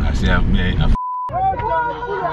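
A steady test tone beeps briefly.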